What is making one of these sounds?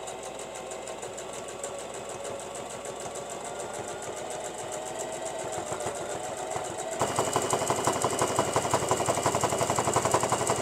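A sewing machine stitches in a fast, steady rhythm, growing louder and closer.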